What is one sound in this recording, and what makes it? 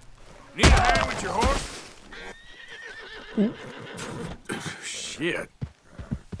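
Hooves thud as a horse gallops away over grass.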